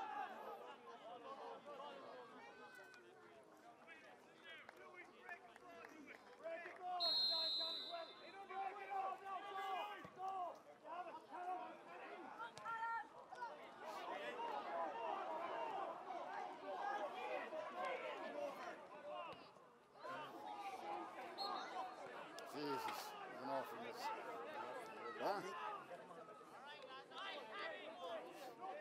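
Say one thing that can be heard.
A crowd of spectators talks and calls out close by, outdoors.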